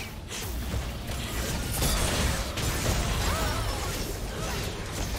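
Video game spell blasts, whooshes and hits clash during a fight.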